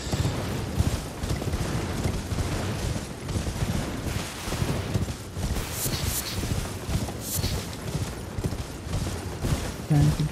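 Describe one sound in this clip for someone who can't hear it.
Horse hooves thud quickly over grass.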